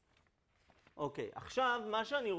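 A man speaks calmly and in bursts, like a lecturer, heard through a microphone.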